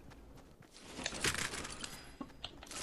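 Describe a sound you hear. A box is searched open with a rattling burst.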